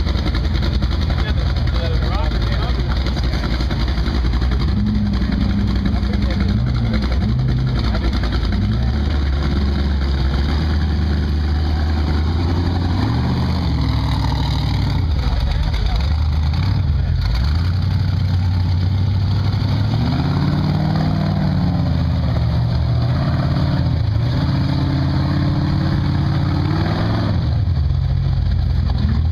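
Off-road vehicle engines rumble and rev loudly outdoors.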